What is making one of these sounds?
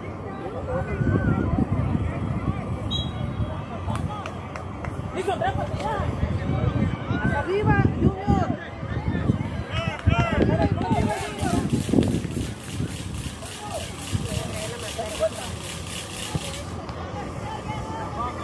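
Young men shout and call to each other across an open field.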